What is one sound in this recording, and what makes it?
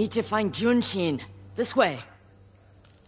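A woman speaks firmly, close by.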